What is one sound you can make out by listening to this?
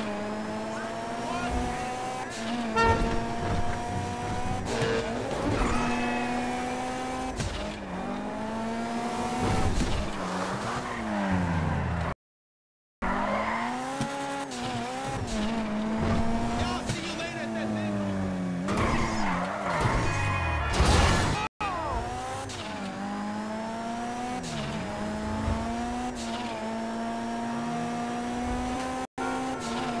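A car engine revs and roars, rising and falling as it shifts gears.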